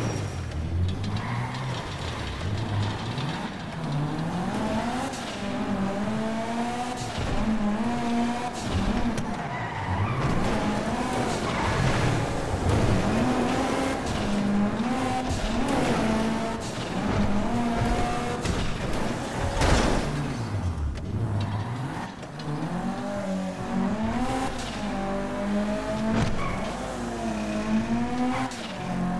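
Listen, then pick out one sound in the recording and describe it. A car engine roars and revs up and down.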